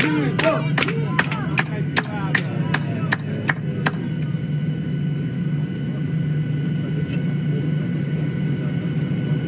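A low steady hum drones.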